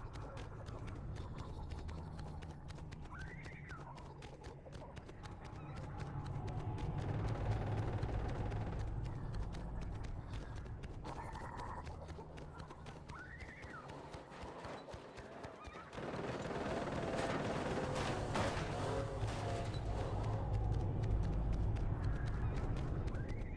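Quick footsteps run through rustling grass.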